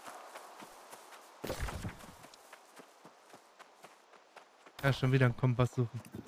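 Footsteps crunch softly on grass and dirt.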